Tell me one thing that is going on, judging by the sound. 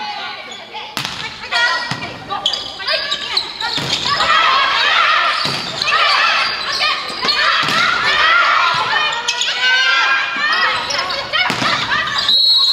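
A volleyball is struck with loud smacks.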